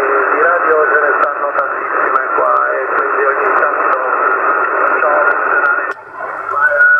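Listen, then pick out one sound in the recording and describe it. Radio static hisses loudly through a loudspeaker, then drops away.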